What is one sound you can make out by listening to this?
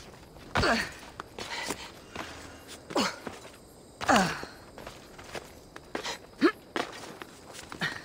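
Hands and feet scrape on rock during a climb.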